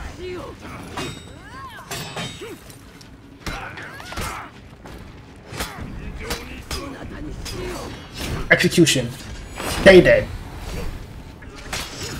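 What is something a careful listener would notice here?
Metal blades clash and clang in a sword fight.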